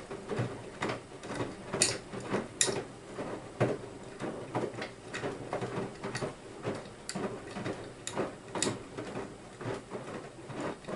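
Water and laundry slosh and splash inside a turning washing machine drum.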